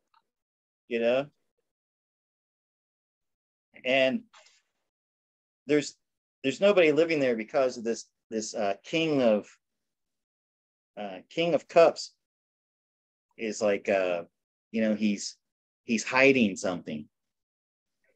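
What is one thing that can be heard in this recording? An older man speaks calmly through an online call.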